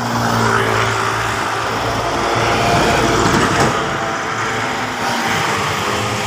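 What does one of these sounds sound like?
A truck engine idles close by.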